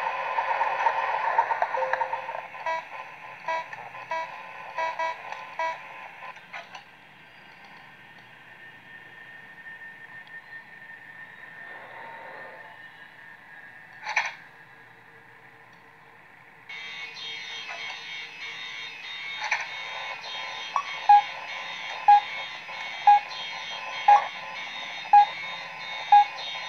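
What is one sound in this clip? Electronic static hisses and crackles from a speaker.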